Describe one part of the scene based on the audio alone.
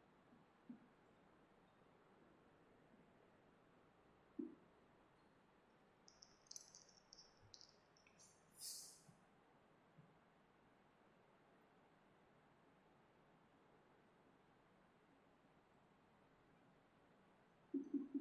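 A marker squeaks faintly as it writes on a whiteboard.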